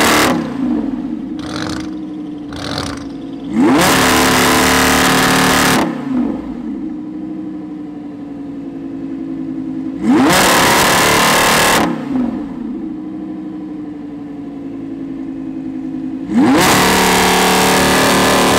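A sports car engine idles with a deep, rumbling burble.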